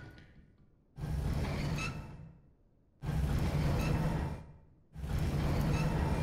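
A heavy metal shutter rumbles and grinds.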